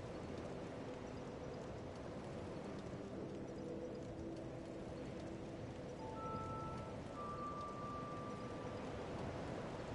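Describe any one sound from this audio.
A bonfire crackles softly.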